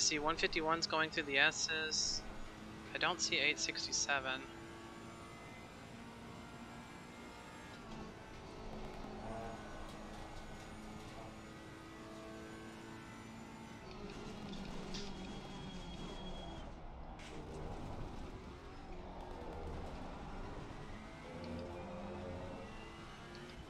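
A racing car engine drones steadily, shifting pitch as it revs and slows.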